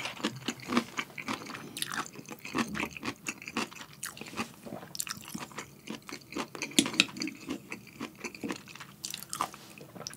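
A young man chews food wetly and smacks his lips close to a microphone.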